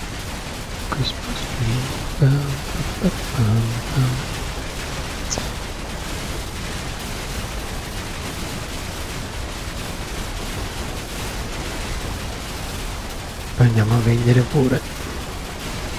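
A man talks briefly and casually into a close microphone.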